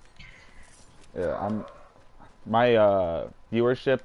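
Footsteps run over grass in a video game.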